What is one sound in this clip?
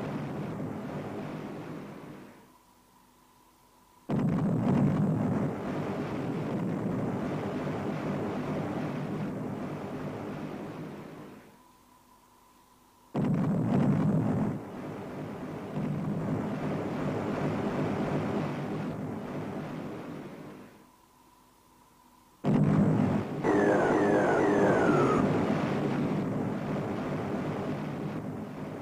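A ship's engine rumbles with a noisy roar.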